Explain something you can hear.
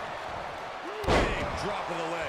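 A body slams onto a wrestling ring mat with a heavy thud.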